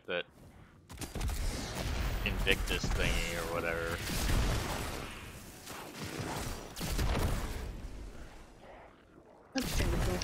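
Gunfire and explosions boom from a game.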